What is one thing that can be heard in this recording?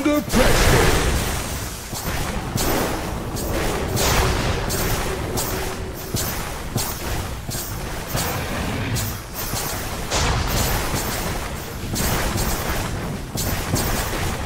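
Spell effects and weapon strikes clash and burst in a busy fight.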